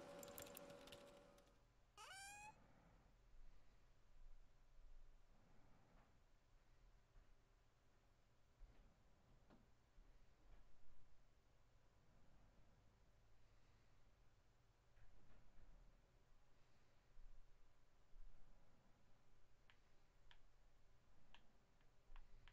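A man talks quietly into a microphone.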